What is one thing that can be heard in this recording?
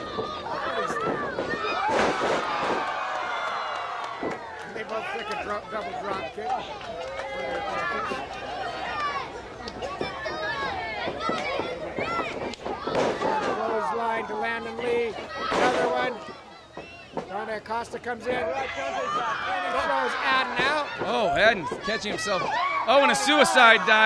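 An outdoor crowd cheers and shouts throughout.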